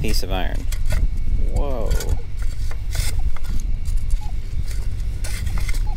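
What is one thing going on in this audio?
A metal scoop scrapes and digs into sand.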